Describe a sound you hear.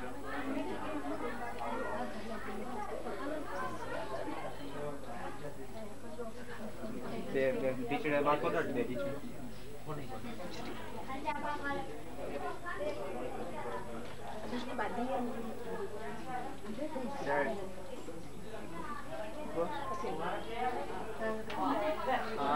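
Men and women talk over one another nearby.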